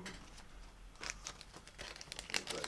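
Card stock rustles and taps as a hand picks it up.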